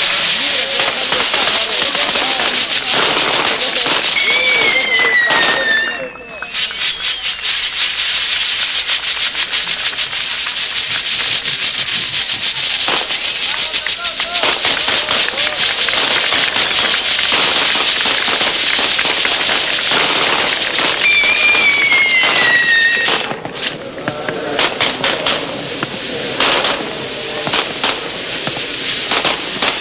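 Fireworks crackle and fizz rapidly.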